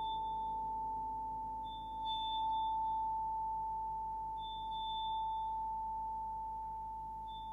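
A piano plays softly in a large hall.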